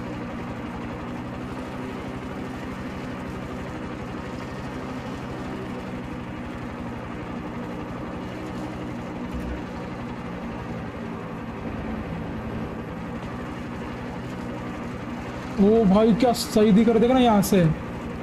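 A helicopter's engine drones steadily.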